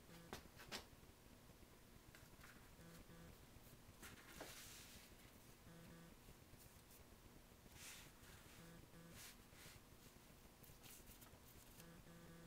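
A small brush clicks against the rim of a plastic jar.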